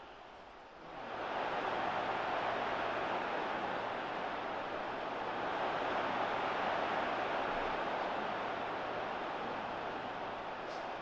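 A stadium crowd swells into a loud roar.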